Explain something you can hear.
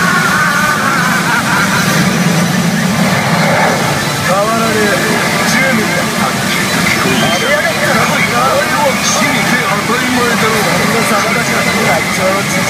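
A pachinko machine blares electronic music and effects through its speakers.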